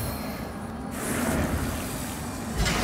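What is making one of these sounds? A magic blast bursts with a crackling whoosh.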